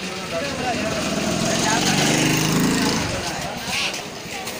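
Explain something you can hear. A motorbike engine idles close by.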